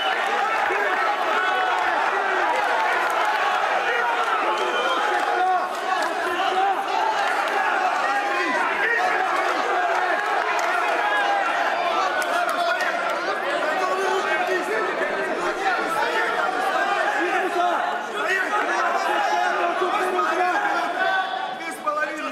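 A large crowd cheers and shouts in an arena.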